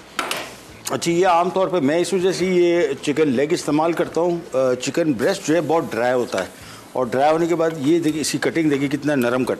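A middle-aged man talks calmly and clearly into a microphone.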